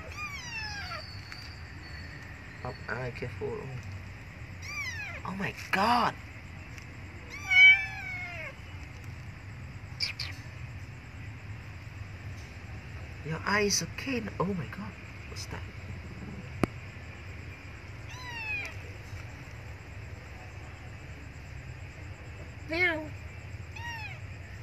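A kitten cries with high-pitched meows over and over.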